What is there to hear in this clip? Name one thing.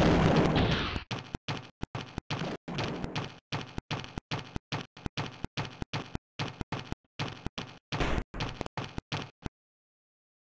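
Heavy metal footsteps stomp in a steady rhythm.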